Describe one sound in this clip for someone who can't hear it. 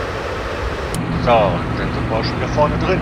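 A locomotive engine hums steadily from inside the cab.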